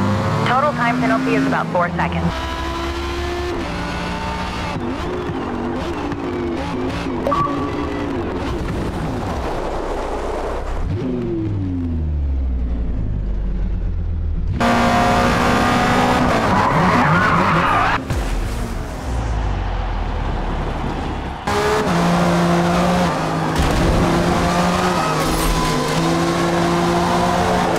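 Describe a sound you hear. A racing car engine roars at high revs and changes pitch as gears shift.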